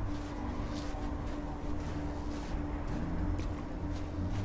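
Footsteps crunch slowly on snow.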